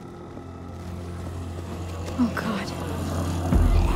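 Fires crackle and roar nearby.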